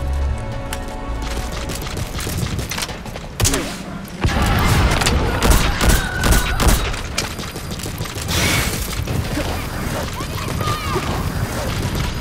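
Footsteps thud quickly on hard ground as someone runs.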